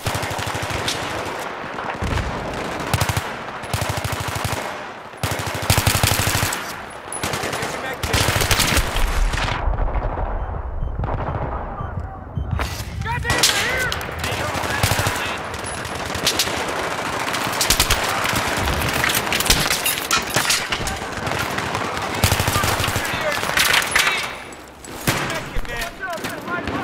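Rapid gunfire bursts out in quick, loud volleys.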